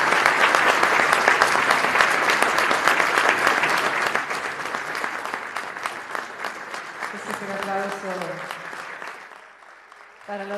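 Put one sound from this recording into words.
A large audience applauds loudly in an echoing hall, then the applause fades.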